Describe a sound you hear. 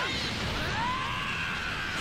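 An energy aura roars and crackles.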